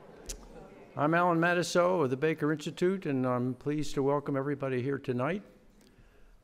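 An older man speaks calmly into a microphone in a large hall.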